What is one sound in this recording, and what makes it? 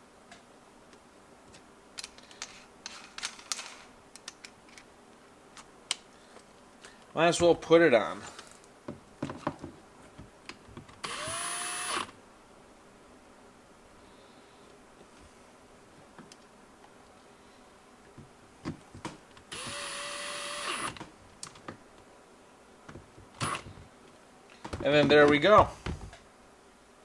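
Plastic tools clack and click as they are handled.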